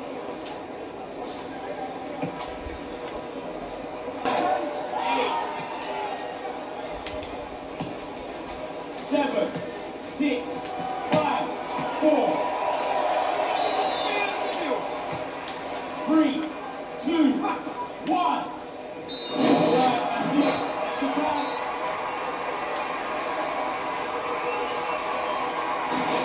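A crowd murmurs and cheers from a television's speakers.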